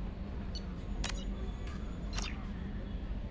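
A game menu clicks softly as the selection moves.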